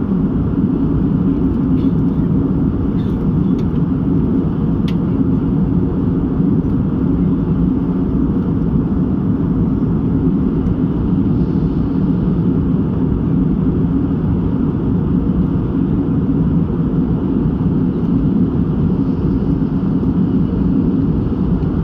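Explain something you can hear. Jet engines roar steadily in the cabin of an airliner in flight.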